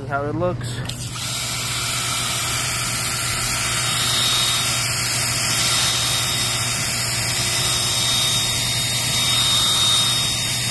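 A pressure washer sprays water hard against concrete with a steady loud hiss.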